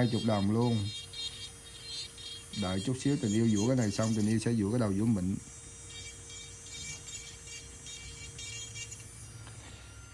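An electric nail drill whirs with a steady, thin hum.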